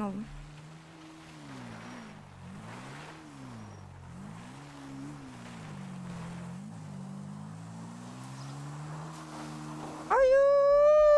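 A motorbike engine revs and whines, rising and falling.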